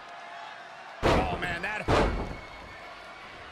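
A body slams heavily onto a wrestling mat with loud thuds.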